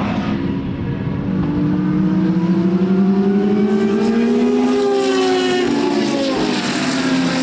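A racing car's engine pitch rises and then drops.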